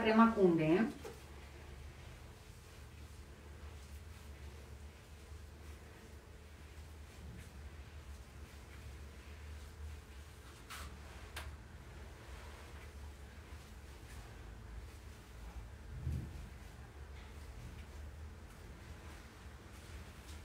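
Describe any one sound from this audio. Hands softly rub and stroke skin.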